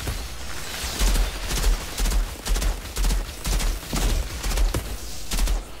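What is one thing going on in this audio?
Gunfire bursts rapidly again and again with a heavy low thump.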